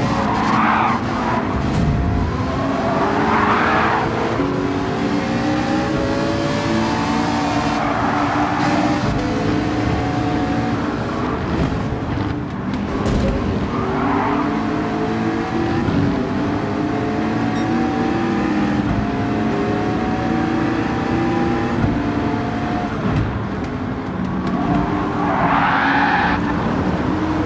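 Tyres screech through the corners.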